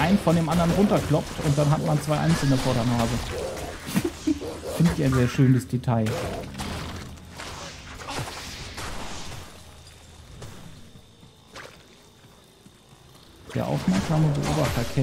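A man talks animatedly, close to a microphone.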